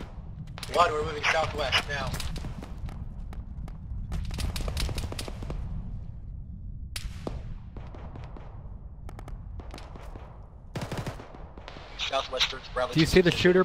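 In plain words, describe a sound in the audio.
Footsteps crunch through snow and stiff grass.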